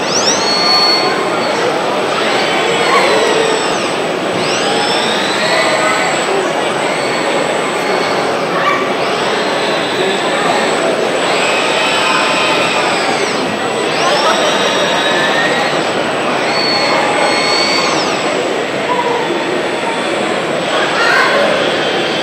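A large robot arm's motors whine, rising and falling in pitch as it swings.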